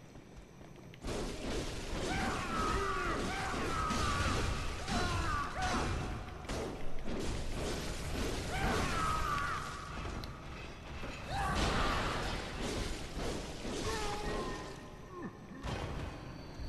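Blades slash and strike repeatedly in a fight.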